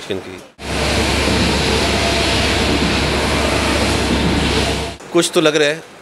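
A large printer whirs and clatters steadily as its print head shuttles back and forth.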